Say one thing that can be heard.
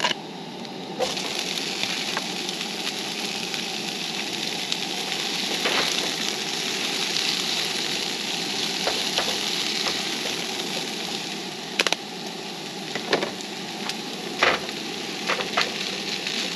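Food sizzles steadily in a frying pan.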